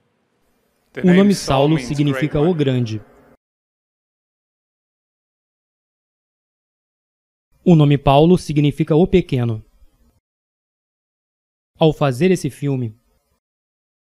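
A man speaks slowly and with long pauses into a microphone.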